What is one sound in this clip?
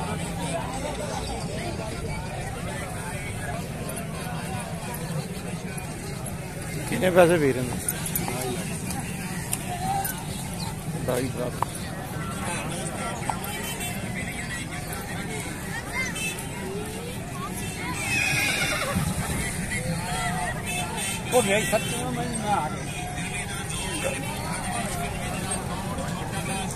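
Men talk nearby amid a murmuring outdoor crowd.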